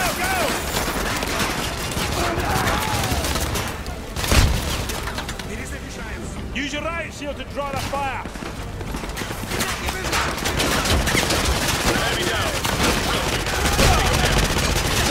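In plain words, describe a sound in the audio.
Rapid gunfire cracks and echoes.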